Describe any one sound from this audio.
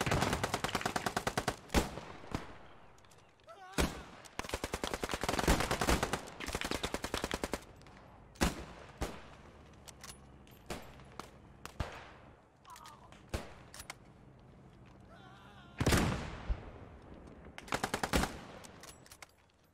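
A submachine gun fires rapid bursts nearby.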